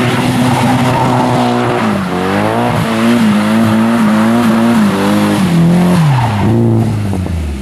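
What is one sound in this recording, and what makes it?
Car tyres screech on pavement.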